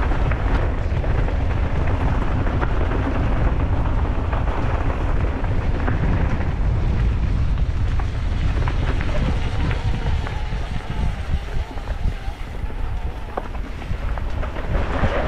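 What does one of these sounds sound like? Bicycle tyres crunch and rattle over a dirt trail.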